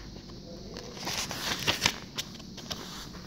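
A paper page rustles and crackles as it is turned.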